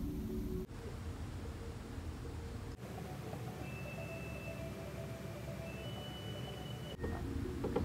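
A woman sips tea quietly.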